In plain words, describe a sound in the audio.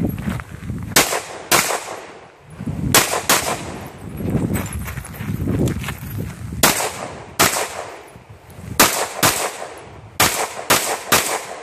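Pistol shots crack loudly outdoors, one after another.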